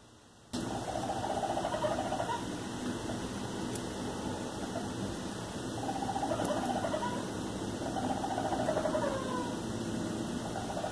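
A raccoon chitters and trills softly.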